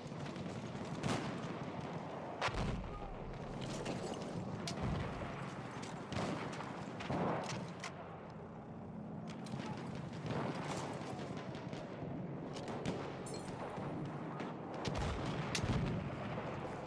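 Bolt-action rifle shots crack and echo outdoors.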